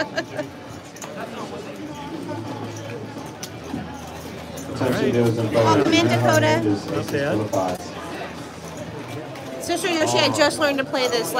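Casino chips click and clack together.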